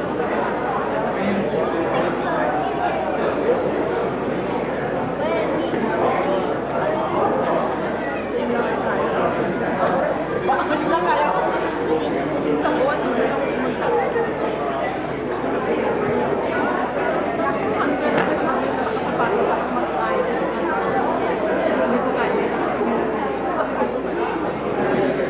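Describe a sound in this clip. A crowd of young men chatters and talks all around, close by.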